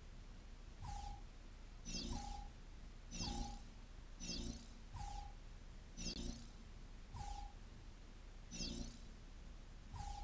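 A baby babbles and coos in short bursts.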